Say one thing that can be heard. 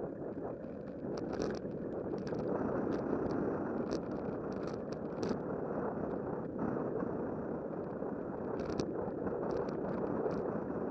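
Tyres rattle and click over a rougher path.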